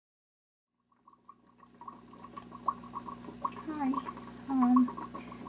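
Water trickles and bubbles in an aquarium.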